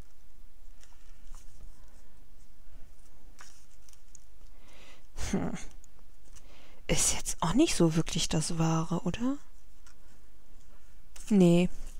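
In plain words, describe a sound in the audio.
A ribbon rustles softly as it is pulled through a paper tag.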